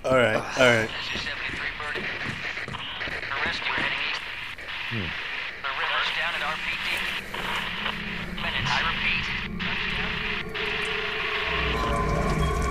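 A man speaks through a crackling radio.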